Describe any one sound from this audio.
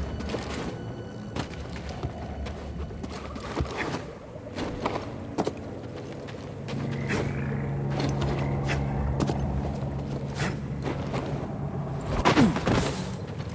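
Hands grab and scrape against rock while climbing.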